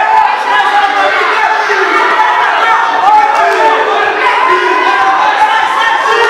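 A crowd shouts and cheers loudly close by.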